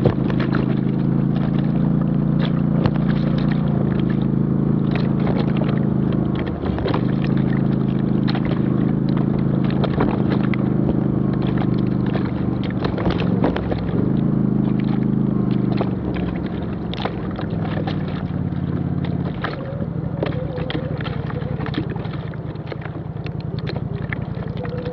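An off-road vehicle's engine drones at low speed on a dirt trail.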